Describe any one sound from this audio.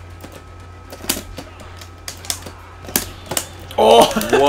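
Sharp video game hit sounds smack in quick succession.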